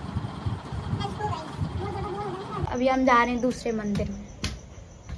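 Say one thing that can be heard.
A young girl talks close by.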